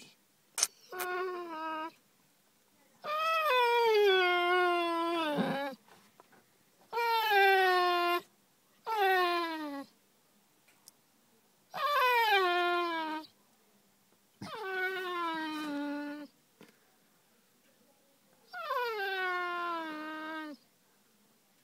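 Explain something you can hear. A dog howls in long, falling wails, again and again, close by.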